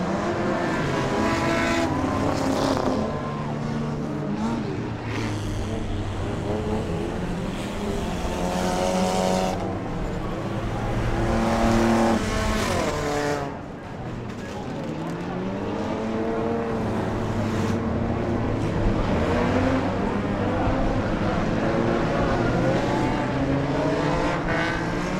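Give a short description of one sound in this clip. Race car engines roar and rev around a track.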